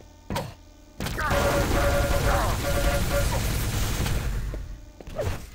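A lightning gun crackles and buzzes as it fires.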